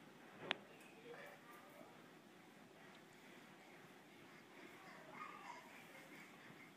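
A baby babbles softly nearby.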